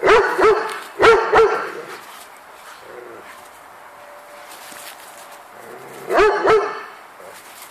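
A large guardian dog barks in deep, short bursts.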